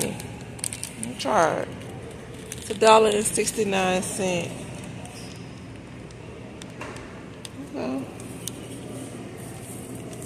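A plastic package of pasta rustles as it is pulled from a shelf.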